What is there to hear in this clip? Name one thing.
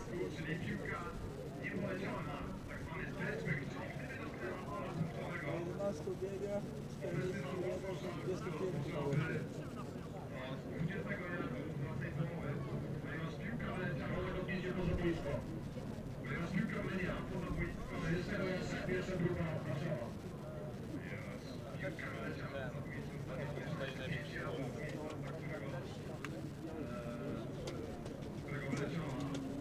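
Men talk and call out nearby, outdoors on an open field.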